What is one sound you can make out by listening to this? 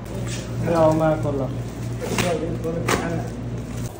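A plastic-wrapped bundle rustles and crinkles as it is handled.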